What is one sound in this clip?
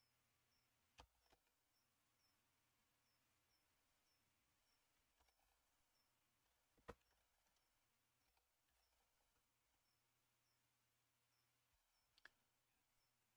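Keyboard keys click now and then.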